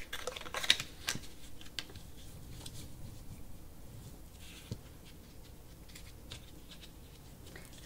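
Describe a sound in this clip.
Stiff cardboard crinkles and creases as it is folded by hand.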